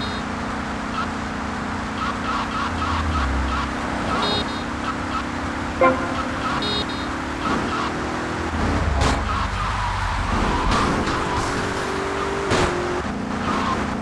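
A car engine hums steadily as it drives along.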